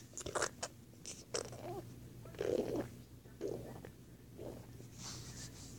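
Plush toys rustle and rub softly as a hand moves them.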